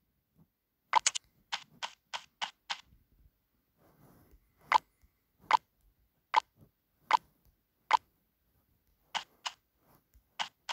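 Game menu taps click sharply.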